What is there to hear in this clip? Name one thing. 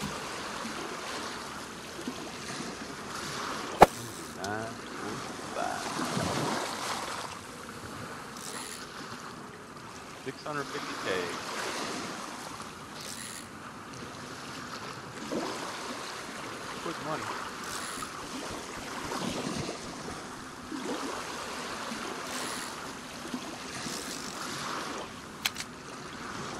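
Water laps gently against a boat.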